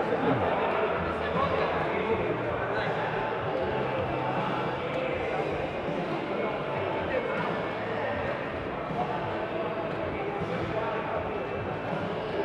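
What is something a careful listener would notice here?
Darts thud into an electronic dartboard.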